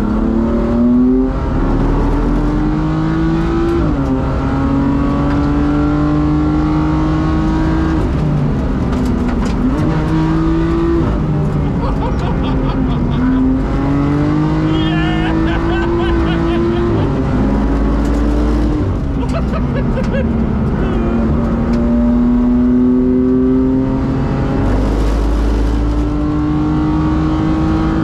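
A race car engine roars loudly inside the cabin, revving up and dropping with each gear change.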